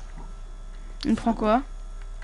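A young woman speaks into a headset microphone with animation.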